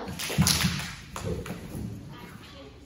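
A child's footsteps thud quickly across a wooden stage floor.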